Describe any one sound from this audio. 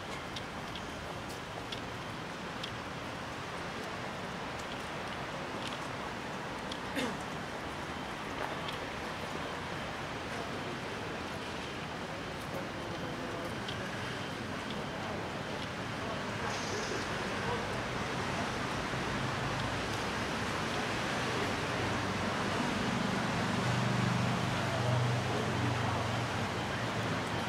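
Traffic hums in the distance and grows a little louder.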